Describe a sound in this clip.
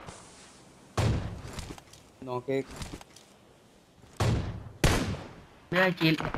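Rifle shots crack loudly, each followed by a fading echo.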